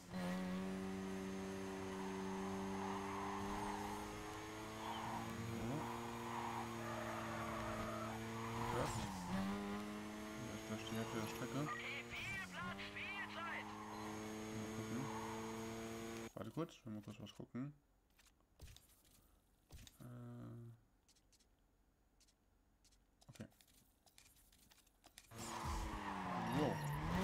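A sports car engine races at high revs.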